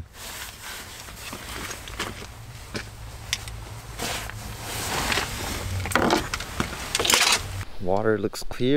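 Gear rustles and clatters up close.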